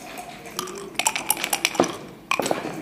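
Dice rattle and clatter across a wooden board.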